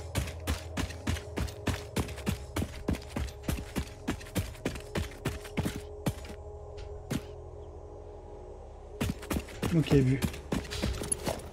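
Footsteps tread quickly over rocky ground.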